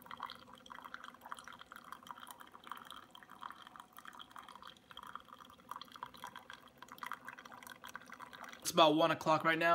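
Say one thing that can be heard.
A coffee machine hums steadily.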